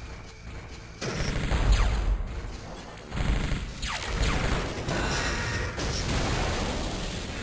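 Weapons fire and explosions rumble in a battle between machines.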